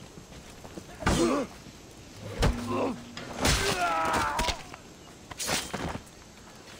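Blades clash and strike in a brief fight.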